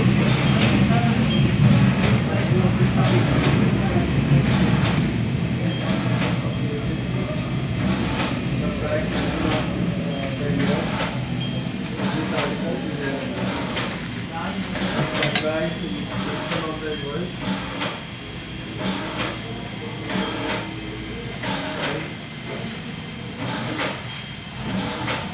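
A small handheld printer clicks as it rolls along.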